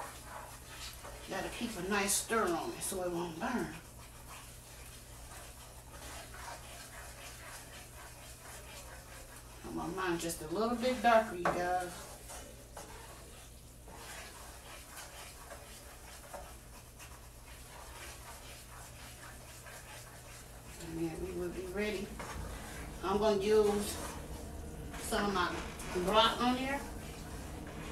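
A wooden spatula scrapes and stirs in a frying pan.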